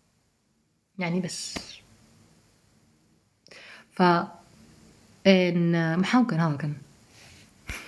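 A woman speaks calmly and close up, in short phrases with pauses.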